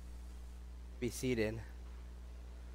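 A man speaks briefly through a microphone in a large echoing hall.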